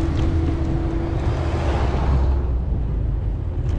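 A car passes close by with a rush.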